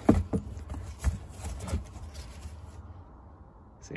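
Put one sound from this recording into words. A fabric case rustles as a device is lifted out.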